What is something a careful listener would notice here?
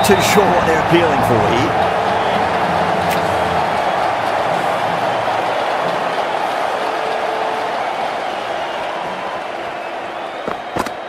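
A large stadium crowd roars steadily and slowly fades.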